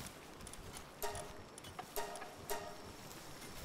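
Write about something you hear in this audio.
Short bright menu chimes play in quick bursts.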